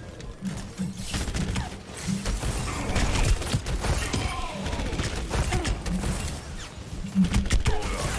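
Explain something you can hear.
Gunfire from a heavy weapon rattles in quick bursts.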